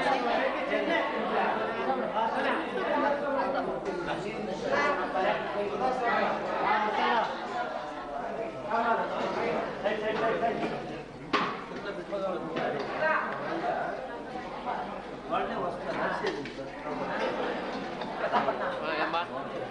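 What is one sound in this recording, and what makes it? A crowd of men, women and children chatter nearby.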